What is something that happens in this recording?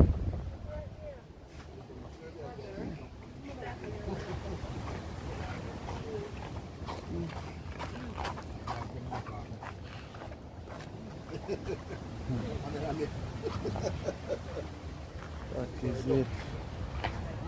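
Men and women chat quietly at a distance, outdoors.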